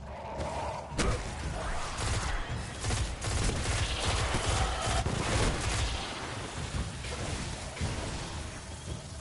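Energy weapon shots fire in quick bursts.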